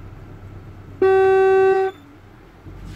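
A car horn honks once in a long blast.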